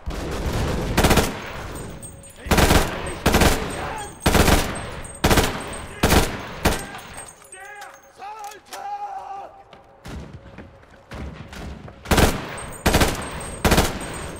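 A submachine gun fires short, loud bursts close by.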